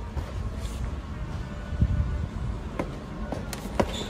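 A cardboard box is set down into a wire shopping cart.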